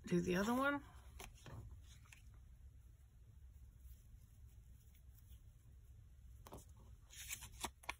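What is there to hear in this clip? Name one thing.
A card taps and slides on a cutting mat.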